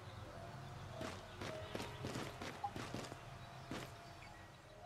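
Footsteps scuff on rock.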